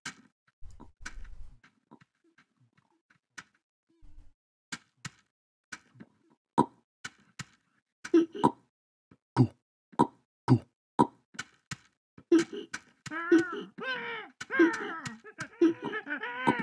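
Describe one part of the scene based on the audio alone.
Short footsteps tap along at an uneven pace.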